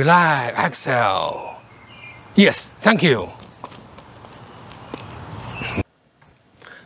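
A middle-aged man speaks through a microphone outdoors.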